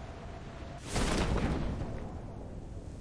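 A parachute opens with a rushing whoosh.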